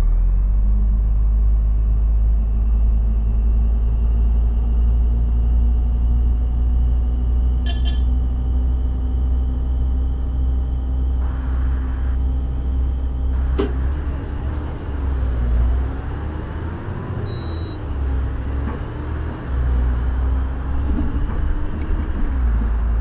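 A bus engine hums and rises in pitch as the bus pulls away.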